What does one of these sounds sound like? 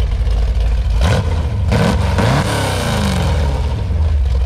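A car engine revs up sharply and then settles back down.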